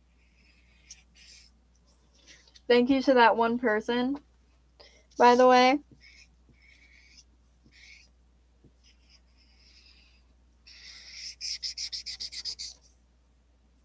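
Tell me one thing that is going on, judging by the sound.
A felt-tip marker squeaks and scratches across paper in quick strokes.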